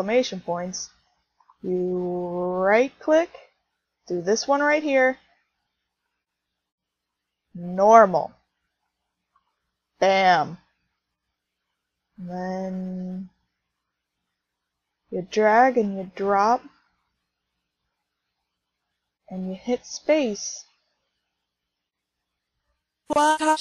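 A synthesized singing voice sings short phrases with pauses in between.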